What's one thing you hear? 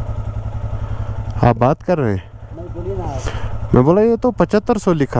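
A motorcycle engine idles with a steady low putter.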